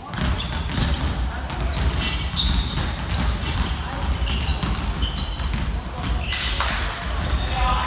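Players and spectators call out in a large echoing hall.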